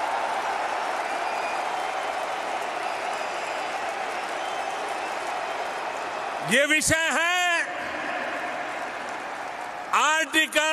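A large crowd cheers and claps in a big echoing hall.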